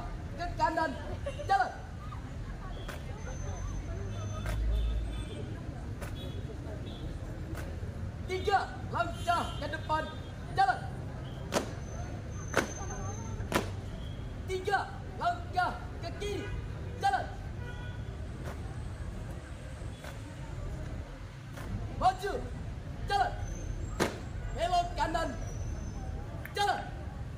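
Marching feet stamp in unison on a hard court.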